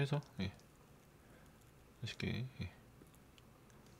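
A spoon scrapes against a bowl.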